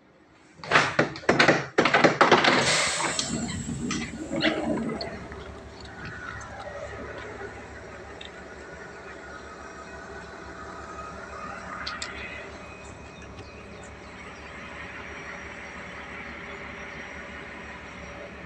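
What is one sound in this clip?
A train rolls past along the track with a steady rumble.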